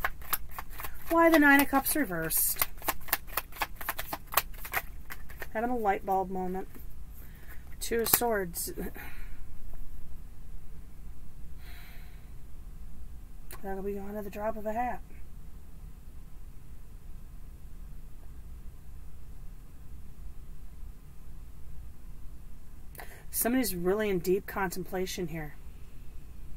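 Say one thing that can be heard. A woman speaks calmly and close by, in short phrases.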